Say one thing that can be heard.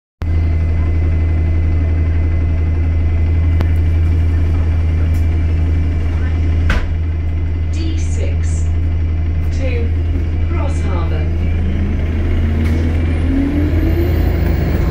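A bus rattles and rumbles as it drives.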